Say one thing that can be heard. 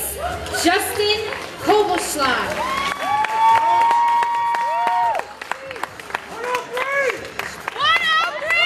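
A crowd claps and whistles.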